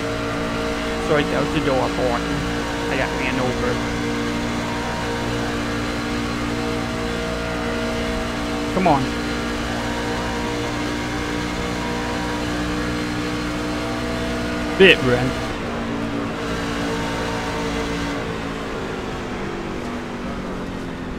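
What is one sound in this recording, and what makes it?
Race car engines roar steadily at high speed.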